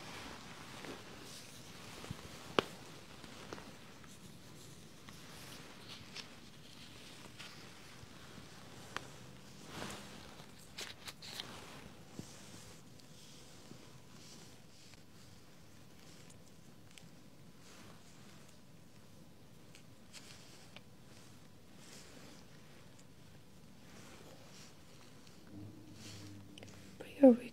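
Latex gloves rub and crinkle softly against skin close by.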